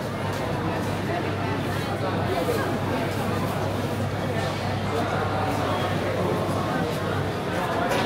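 A crowd of people chatter and murmur all around in an echoing indoor hall.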